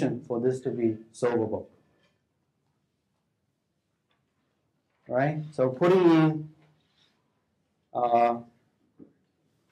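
A man lectures calmly through a microphone, pausing between phrases.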